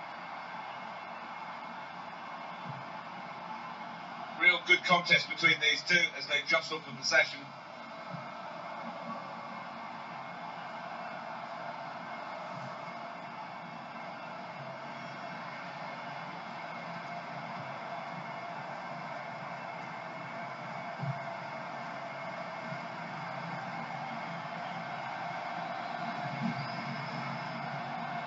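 A stadium crowd murmurs steadily through a television speaker.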